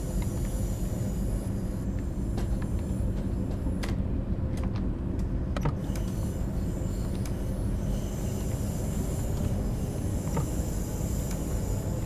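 A diesel multiple unit rumbles under way, heard from inside the cab.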